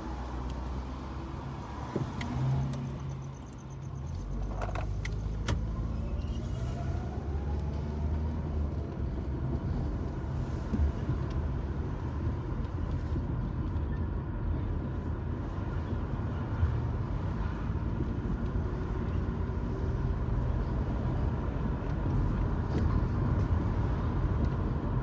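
A car engine hums low and steady from inside the cabin.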